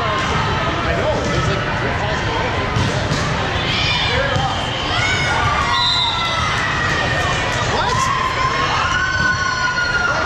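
Many voices chatter and shout across a large echoing gym.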